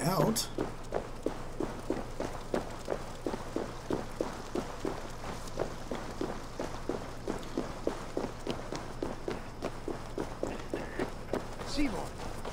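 Footsteps crunch steadily on stone.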